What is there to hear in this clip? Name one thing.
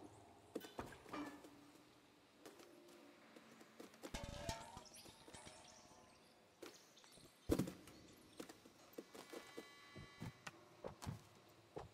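A cat's paws thump softly as it lands from jumps.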